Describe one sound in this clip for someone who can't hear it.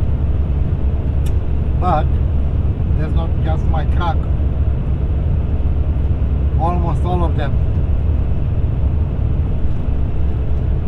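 A vehicle engine hums steadily with a low road rumble.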